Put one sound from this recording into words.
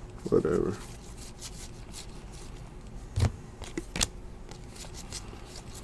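Trading cards shuffle and slide against each other in hands.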